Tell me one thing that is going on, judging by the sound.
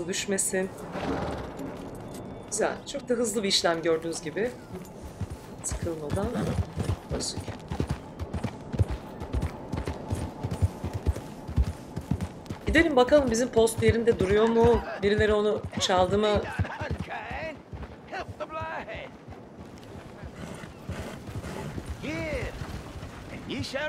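Horse hooves clop steadily on a dirt path.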